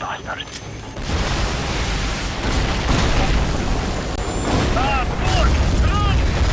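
A huge explosion booms and rumbles on.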